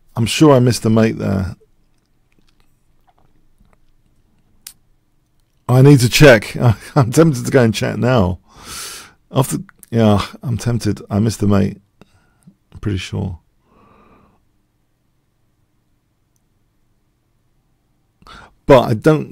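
A middle-aged man talks with animation into a close microphone, pausing now and then.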